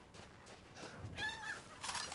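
Chickens cluck.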